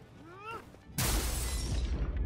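A heavy blow lands with a thud.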